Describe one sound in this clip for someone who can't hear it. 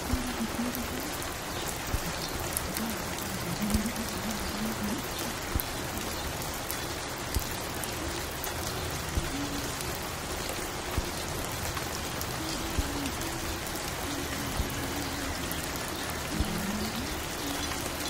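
A vinyl record crackles and hisses as it spins on a turntable.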